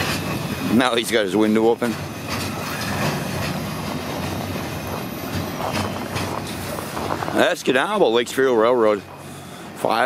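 A freight train rumbles slowly past.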